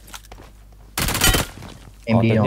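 Rapid gunshots crack in a short, quick burst.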